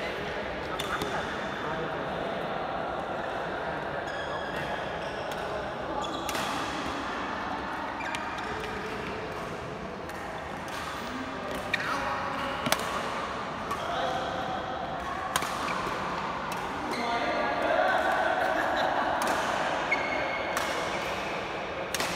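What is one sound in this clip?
Rackets smack shuttlecocks in quick rallies in an echoing hall.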